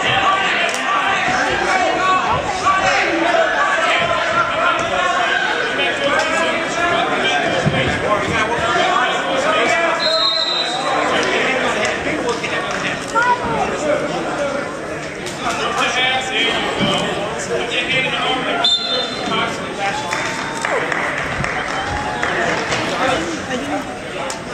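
A crowd of spectators shouts and cheers loudly in an echoing gym.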